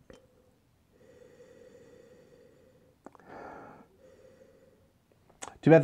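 A middle-aged man sniffs wine from a glass.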